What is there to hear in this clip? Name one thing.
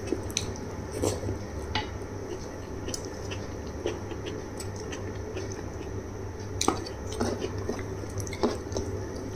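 A woman chews food wetly, close to a microphone.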